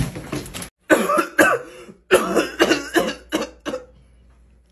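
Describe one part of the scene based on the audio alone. A young person coughs loudly into a hand, close by.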